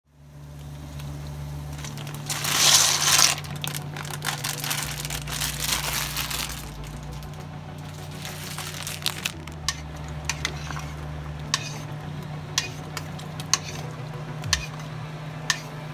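Water boils and bubbles steadily in a pot.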